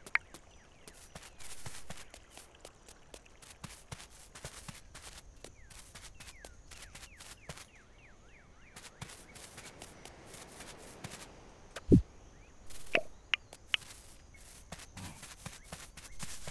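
Footsteps patter quickly over ground.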